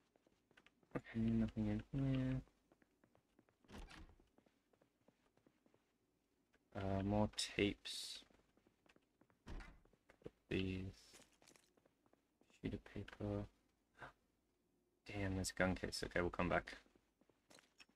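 A man talks calmly into a close microphone, in short bursts.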